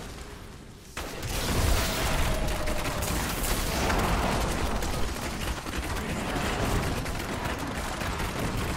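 Magic blasts whoosh and crash loudly.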